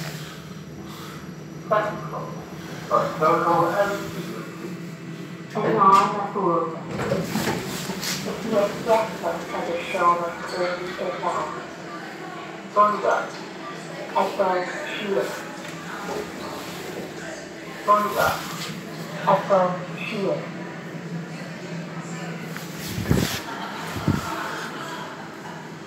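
An elevator hums as it runs.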